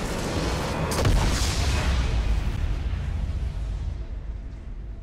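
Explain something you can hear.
A large crystal shatters with a deep rumbling boom.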